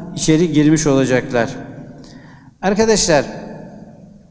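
An elderly man speaks slowly and solemnly into a microphone in an echoing hall.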